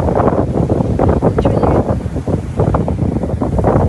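Small waves break on the shore.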